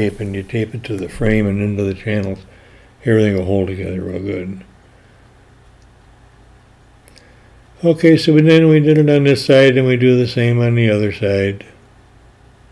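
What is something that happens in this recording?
An elderly man talks calmly and close by.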